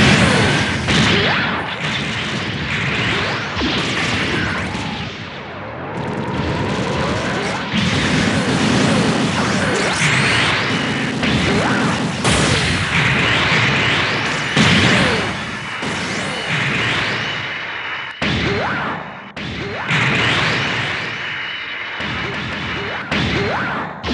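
Thrusters roar steadily as a robot flies.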